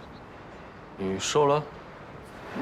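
A young man speaks briefly and quietly, close by.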